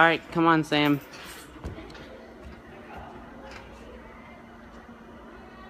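A gymnast's hands grip and thump on parallel bars.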